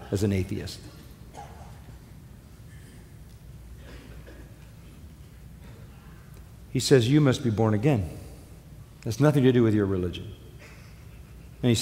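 An elderly man speaks with emphasis through a microphone, pausing between phrases.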